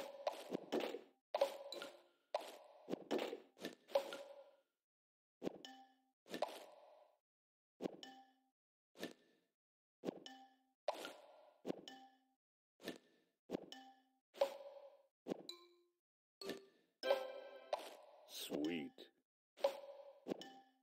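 Bright game chimes and pops ring out in quick bursts as pieces clear.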